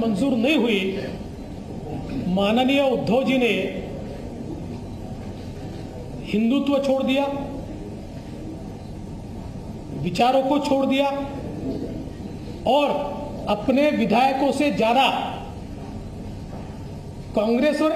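A middle-aged man speaks calmly into microphones, in bursts with pauses.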